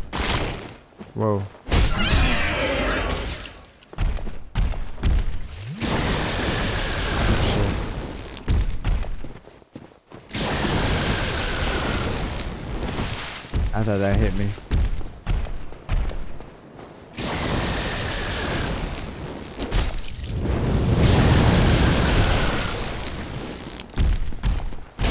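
A young woman speaks into a headset microphone with animation.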